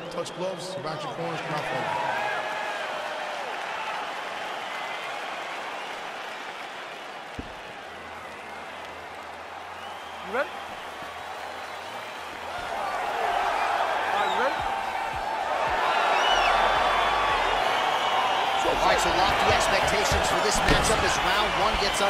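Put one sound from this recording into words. A large crowd cheers and roars in a big echoing arena, swelling louder toward the end.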